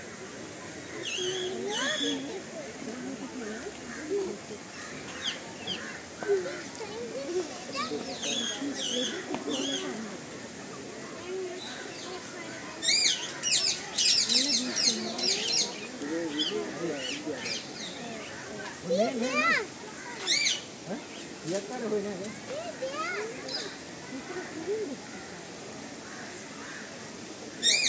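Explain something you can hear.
Birds screech and chirp nearby.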